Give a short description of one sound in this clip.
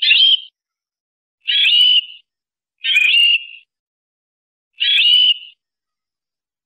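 A canary sings short, bright trilling phrases close by.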